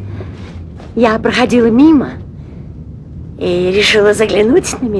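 A woman speaks loudly with animation.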